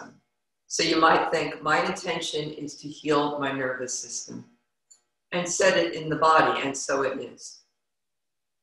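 A woman speaks calmly and softly close to a microphone.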